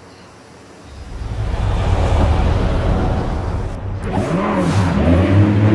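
A sports car engine roars and revs.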